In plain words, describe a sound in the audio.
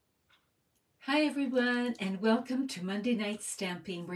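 An elderly woman speaks with animation, close to a microphone.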